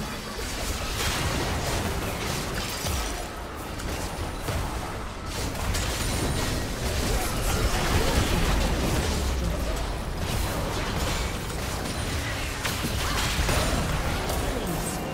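Video game combat effects clash and blast in quick succession.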